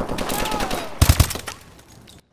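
A few loud gunshots boom.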